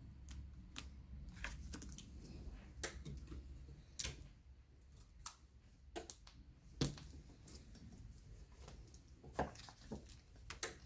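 Paper rustles and crinkles as it is handled and folded.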